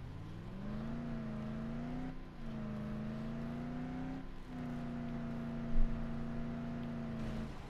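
A car engine drones steadily, dropping briefly as gears change.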